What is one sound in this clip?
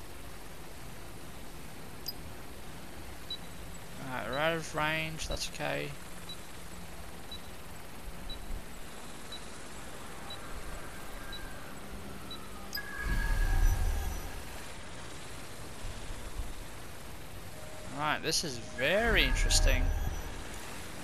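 A small drone whirs steadily as it flies.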